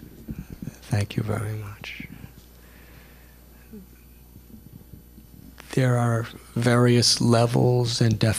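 An elderly man speaks calmly and warmly into a microphone, with pauses.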